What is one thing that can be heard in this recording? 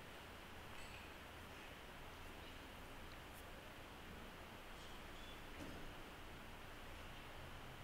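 A man speaks quietly, heard through a microphone in a large echoing room.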